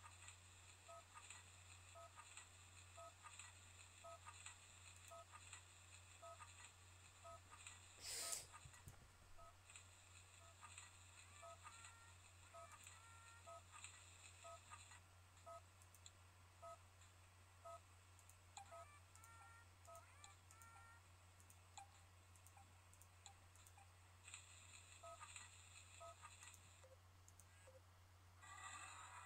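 A computer game plays short electronic blips at a steady pace.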